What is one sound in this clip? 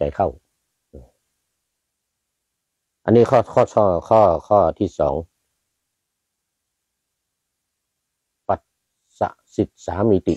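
An elderly man chants slowly into a close microphone, pausing between phrases.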